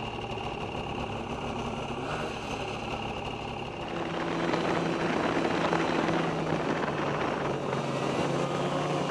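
A snowmobile engine drones steadily up close and grows louder as it speeds up.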